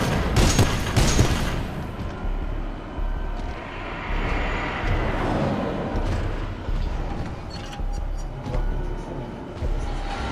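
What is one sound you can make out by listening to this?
A large machine rumbles and hums steadily.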